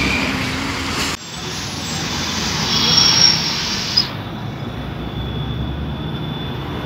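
A bus engine rumbles as the bus drives past.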